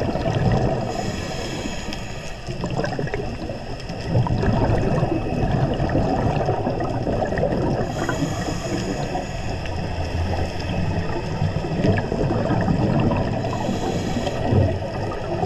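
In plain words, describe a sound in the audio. A scuba regulator hisses steadily as a diver breathes in.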